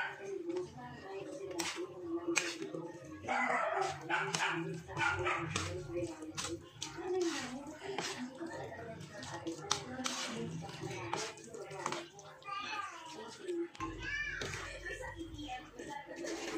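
Noodles squelch softly as they are stirred into sauce.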